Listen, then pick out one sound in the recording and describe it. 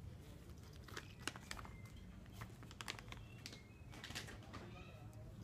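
A plastic snack bag crinkles up close.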